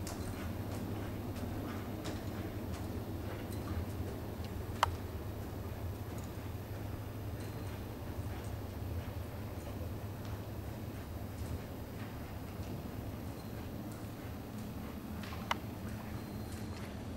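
A horse's hooves thud softly on loose dirt at a walk.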